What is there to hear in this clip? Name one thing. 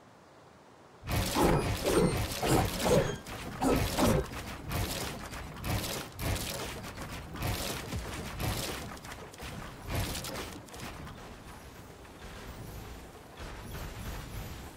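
Wooden building pieces clatter and thud rapidly into place.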